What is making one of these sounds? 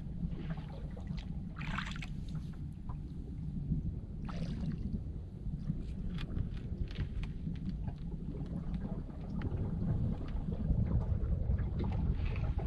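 Water gurgles and laps as a pole pushes a boat along.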